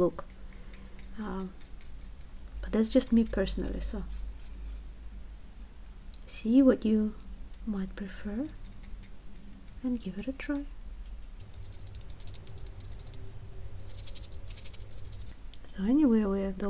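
A paintbrush dabs and strokes softly on paper.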